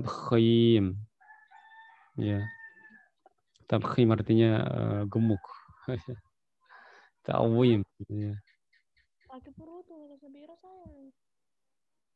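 A man speaks slowly and recites through a microphone in an online call.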